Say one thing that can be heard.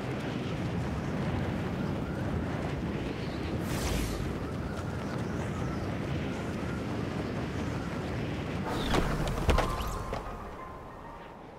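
Wind rushes loudly during a fast fall, then dies down.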